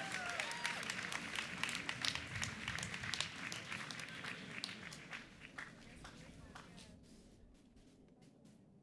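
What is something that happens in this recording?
An outdoor crowd applauds loudly, then the clapping dies away.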